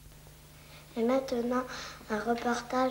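A young boy speaks calmly and close.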